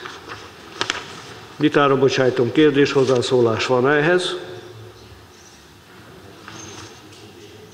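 Papers rustle as a man leafs through them.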